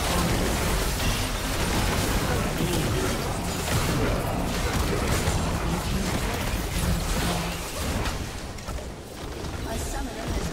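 Spell blasts and hits crash in a video game battle.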